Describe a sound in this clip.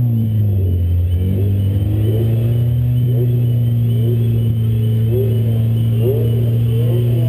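Tyres squeal on pavement.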